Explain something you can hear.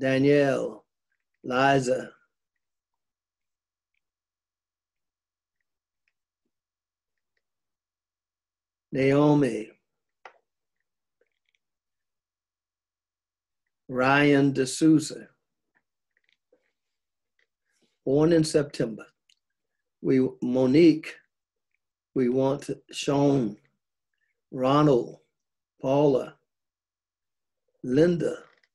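An elderly man speaks slowly in short phrases, with long pauses between them.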